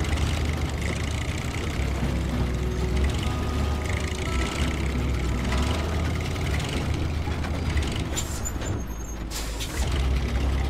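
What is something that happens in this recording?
A truck engine rumbles and strains at low speed.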